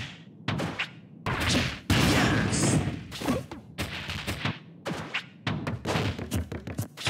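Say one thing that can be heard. Punches and kicks land with sharp, quick thuds.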